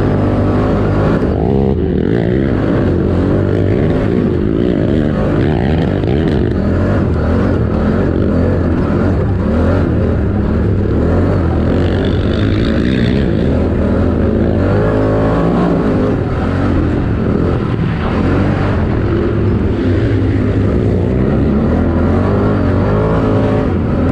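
A quad bike engine roars loudly close by, revving up and down.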